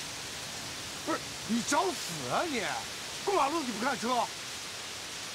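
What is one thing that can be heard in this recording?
A young man shouts angrily at close range.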